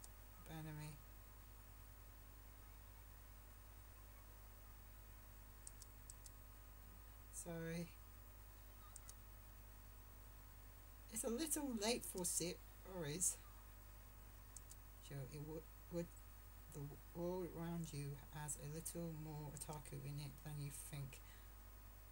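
A teenage boy talks quietly close to a microphone.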